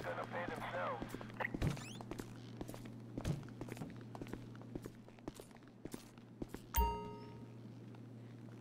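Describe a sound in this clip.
Footsteps fall on a hard floor.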